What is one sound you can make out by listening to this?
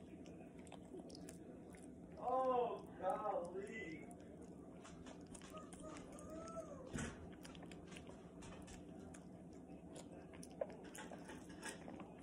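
Fingers scrape food from a metal bowl.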